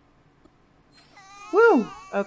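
A magical chime twinkles and rings out.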